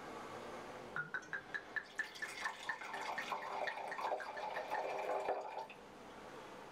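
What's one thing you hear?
Wine glugs and splashes as it is poured into a glass.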